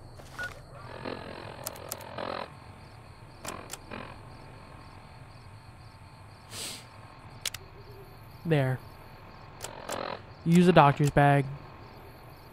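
An electronic device clicks and chirps as its menu pages change.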